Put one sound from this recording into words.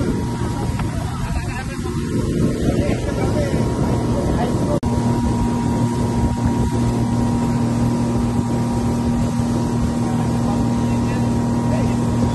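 Water rushes against a boat's hull.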